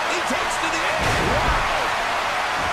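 A heavy body slams down hard onto a wrestling ring mat.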